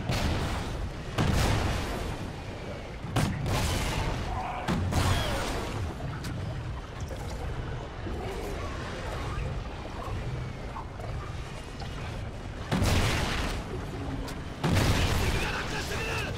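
Automatic gunfire bursts loudly in rapid rounds.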